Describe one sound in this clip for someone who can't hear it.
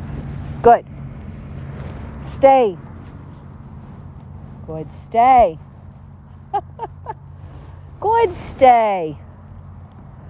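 A woman calls out short commands to a dog in the open air.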